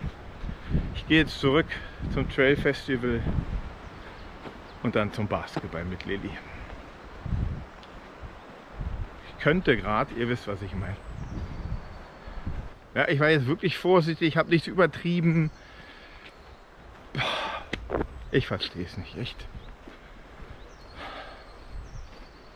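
A middle-aged man talks with animation close to the microphone, outdoors.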